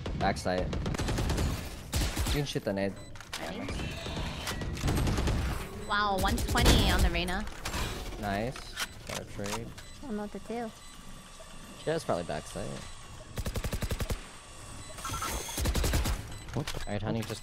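Rapid rifle shots fire in bursts.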